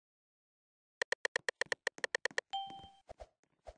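A short bright electronic chime rings out in a rapid run of notes.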